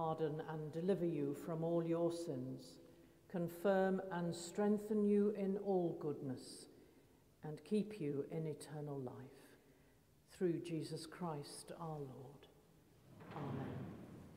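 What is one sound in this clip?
An elderly woman chants slowly in a large echoing hall.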